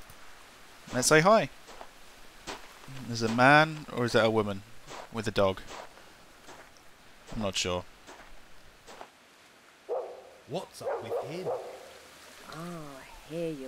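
A man speaks in short phrases, close by.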